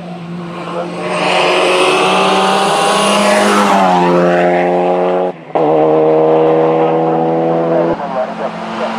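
A racing car engine roars loudly as the car speeds past, its pitch dropping as it goes by.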